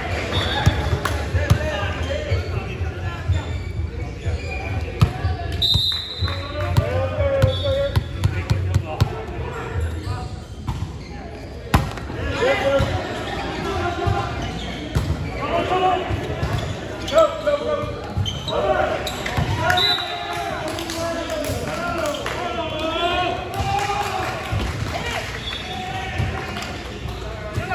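Young men call out and shout to each other in a large echoing gym.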